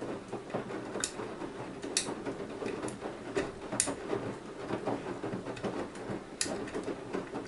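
Items in a washing machine drum clunk and tap against the drum.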